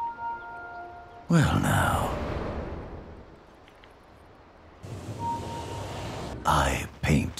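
Electronic game sound effects chime and clash.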